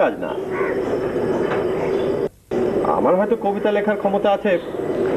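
A man speaks calmly, close by, with a brief pause in the middle.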